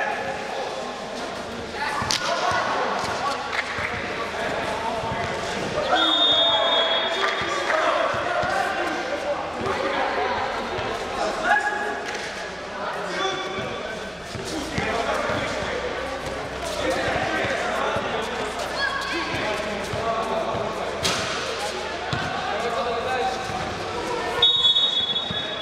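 A basketball bounces on a hard court in a large echoing hall.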